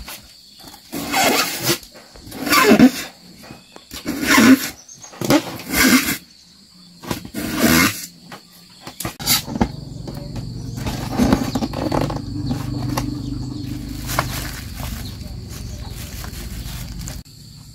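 Foam squeaks as wire hooks are pushed through it.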